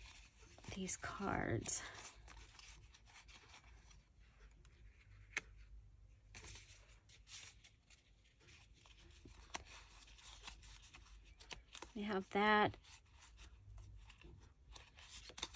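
Stiff cards rustle and tap as they are shuffled by hand.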